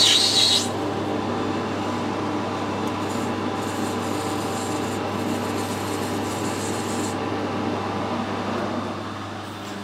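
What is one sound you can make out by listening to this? A lathe spins with a steady whirring hum.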